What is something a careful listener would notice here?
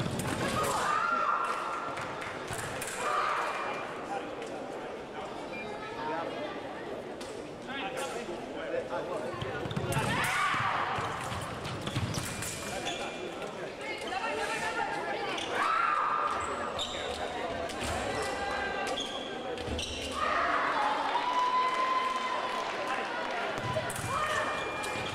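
Fencers' shoes squeak sharply on the floor.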